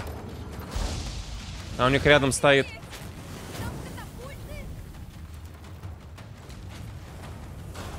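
A fiery explosion rumbles and roars.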